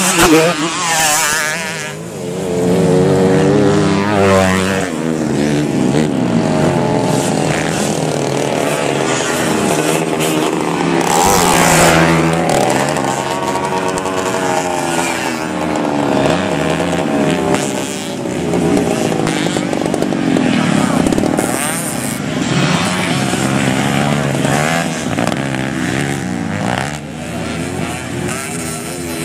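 Dirt bike engines rev loudly, rising and falling in pitch.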